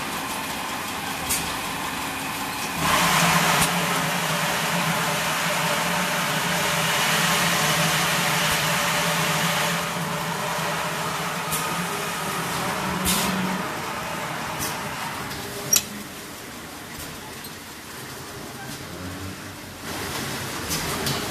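A bottle filling machine hums and whirs.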